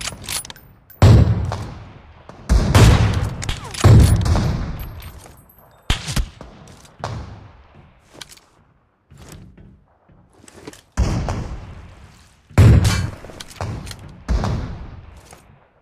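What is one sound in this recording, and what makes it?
Loud gunshots boom, each followed by a long rumbling echo.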